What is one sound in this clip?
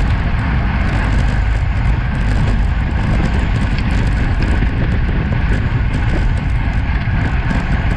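Bicycle tyres hum on smooth tarmac.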